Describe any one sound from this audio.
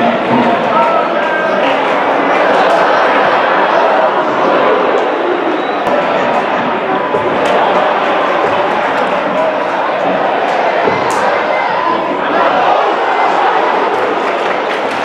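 A crowd murmurs in an open stadium.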